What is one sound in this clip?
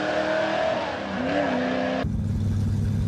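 A race car engine revs loudly in the distance.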